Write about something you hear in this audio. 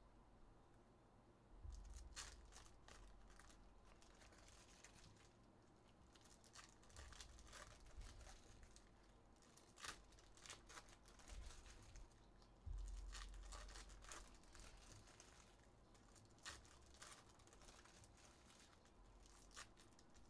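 Foil card packs crinkle and rustle in hands.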